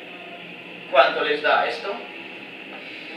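A young man speaks briefly nearby in a room.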